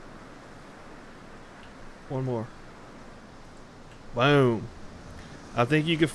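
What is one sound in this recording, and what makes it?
Gentle waves lap softly on open water.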